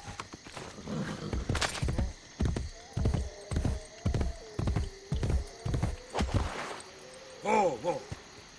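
A horse's hooves gallop steadily on soft ground.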